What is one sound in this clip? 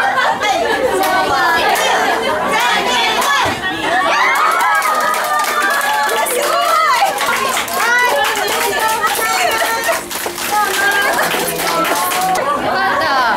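A crowd of young women cheer and laugh.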